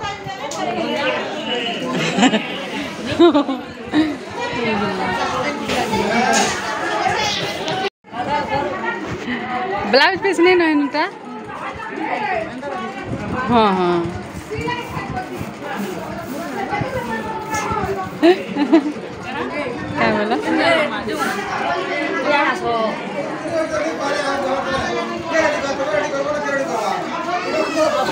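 Several women talk with animation close by.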